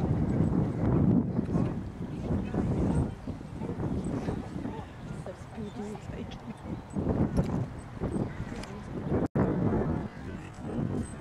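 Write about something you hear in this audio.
A horse canters on grass with dull thudding hoofbeats.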